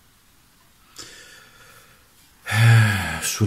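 A book's paper page rustles as it is turned.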